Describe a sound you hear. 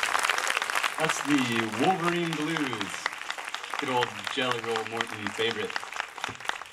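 A young man speaks cheerfully into a microphone over loudspeakers.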